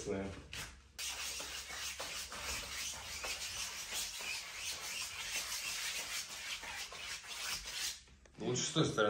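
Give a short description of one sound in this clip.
A brush scrubs paint across a canvas.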